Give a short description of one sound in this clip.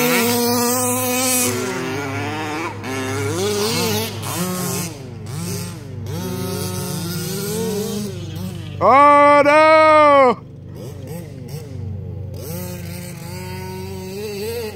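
Small engines whine and rev up and down in the distance.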